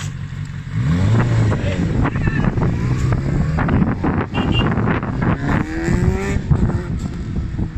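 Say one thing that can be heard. A motorcycle engine revs loudly and roars away, fading into the distance.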